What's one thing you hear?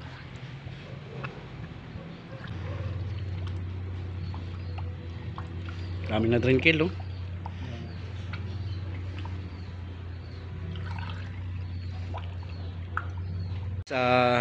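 Liquid glugs as it pours from a jug into a funnel.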